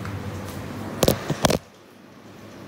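Fingers bump and rub against a phone close up.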